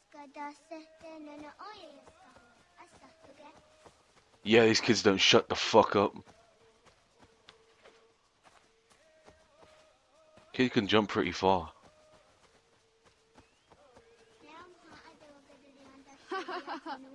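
Footsteps run quickly through grass and undergrowth.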